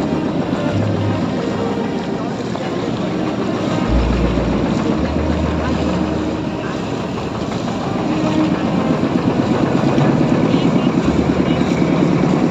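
River water splashes against a boat's hull.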